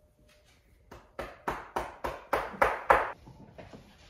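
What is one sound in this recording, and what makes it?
A hand pats a dog's back in quick thumps.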